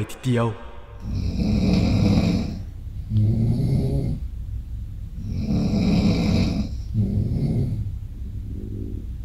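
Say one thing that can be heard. A man snores loudly and heavily, close by.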